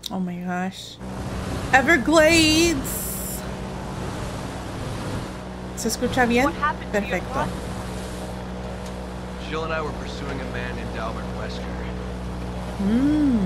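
An airboat engine drones steadily.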